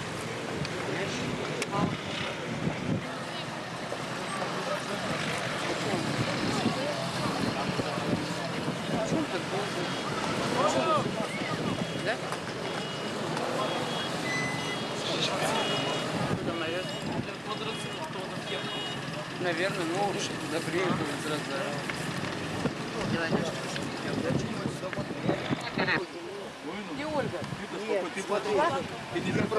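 A crowd of men and women talks and calls out outdoors.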